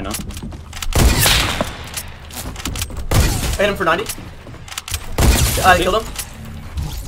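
Gunshots crack in short, loud bursts.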